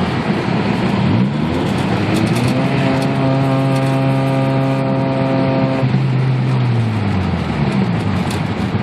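A car engine revs up high and then drops back down.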